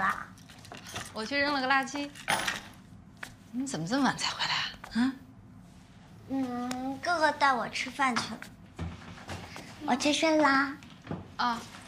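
A woman answers calmly and close by.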